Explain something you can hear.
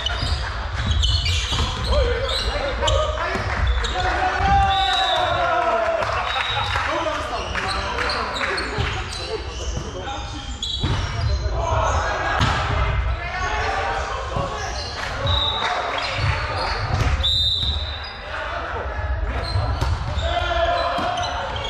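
A volleyball thuds as players strike it.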